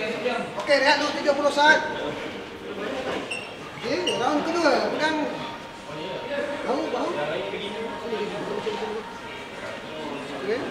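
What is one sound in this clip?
Men shout and grunt with strain close by.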